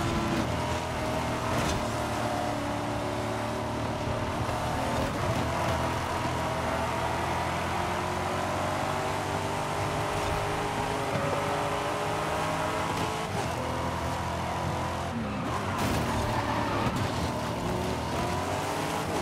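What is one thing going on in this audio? A sports car engine roars loudly, rising and falling in pitch as it shifts gears.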